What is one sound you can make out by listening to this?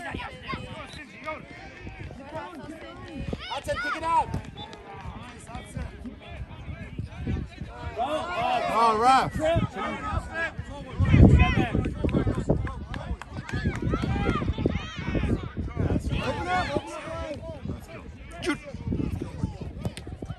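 A crowd of parents and children shouts and cheers outdoors.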